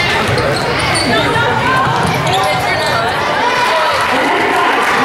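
A crowd of spectators murmurs and calls out in an echoing gym.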